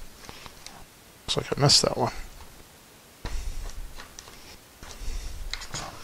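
A screwdriver turns screws with faint squeaks.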